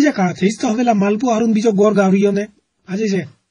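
A man shouts with animation.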